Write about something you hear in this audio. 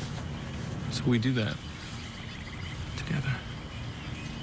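A young man speaks softly and closely.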